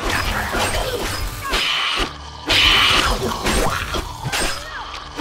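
A blade swishes through the air in quick swings.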